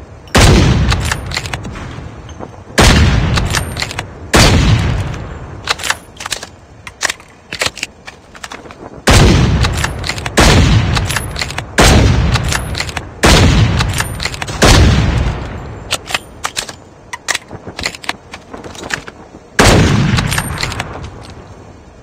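A rifle bolt clicks as it is worked.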